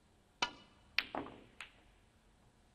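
Snooker balls click together as the cue ball hits the pack of reds.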